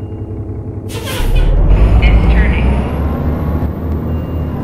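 Bus doors open with a loud hiss of air.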